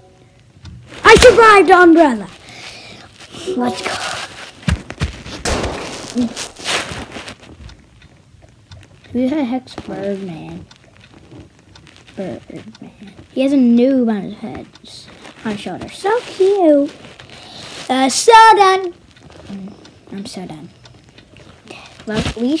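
A young boy talks excitedly into a nearby microphone, now and then exclaiming loudly.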